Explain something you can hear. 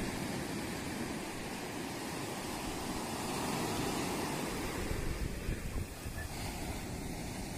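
Waves break and wash up onto a beach.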